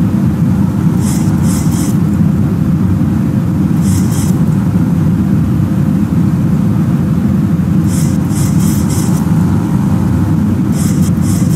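A steady low roar of aircraft engines drones on.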